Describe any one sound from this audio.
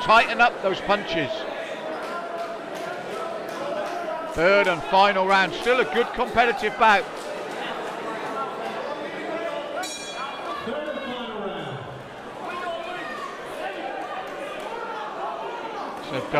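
A crowd of spectators murmurs and chatters in an echoing hall.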